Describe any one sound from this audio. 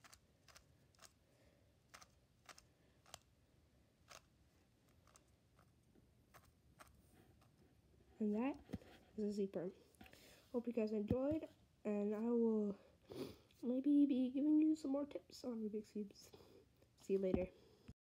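A puzzle cube clicks and clacks as its layers are turned by hand.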